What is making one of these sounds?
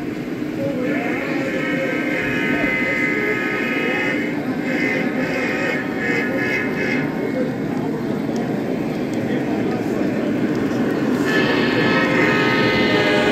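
A model locomotive's horn blows in several long blasts.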